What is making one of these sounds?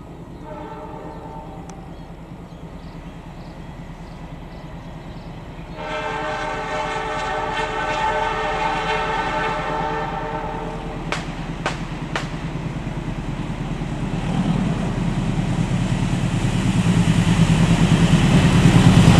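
A diesel locomotive engine rumbles as a train approaches.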